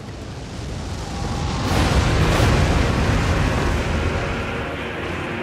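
A meteor streaks down and crashes with a deep, rumbling explosion.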